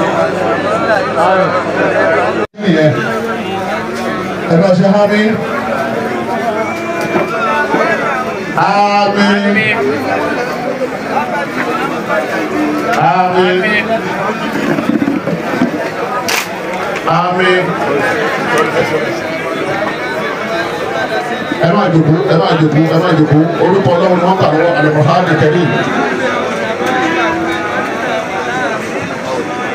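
A crowd of men and women chatters all around, outdoors.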